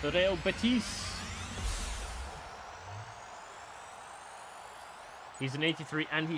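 Whooshing, rising effects swell and fade.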